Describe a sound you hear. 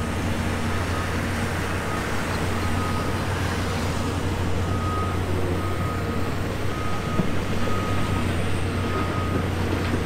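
Heavy diesel engines rumble steadily.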